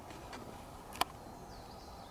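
A putter taps a golf ball on grass.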